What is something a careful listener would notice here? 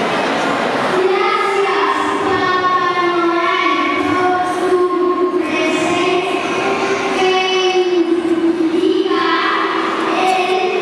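A young girl recites in a high, sing-song voice through a microphone.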